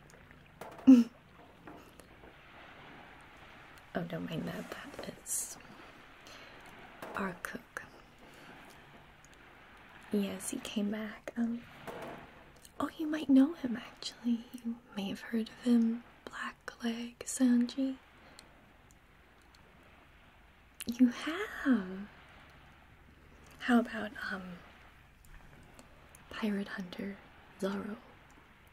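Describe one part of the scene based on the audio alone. A young woman speaks softly and closely into a microphone.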